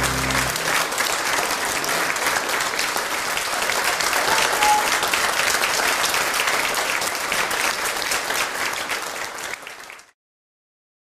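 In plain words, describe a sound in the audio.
An audience applauds steadily, then the clapping fades away.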